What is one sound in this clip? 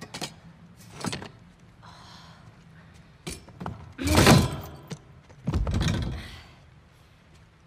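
A metal chair scrapes and clatters on the floor.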